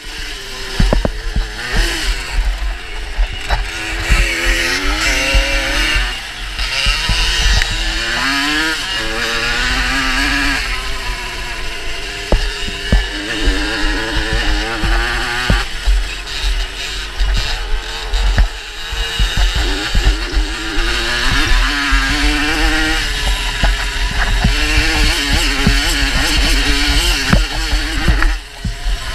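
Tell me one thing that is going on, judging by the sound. A dirt bike engine revs and roars up close, rising and falling in pitch.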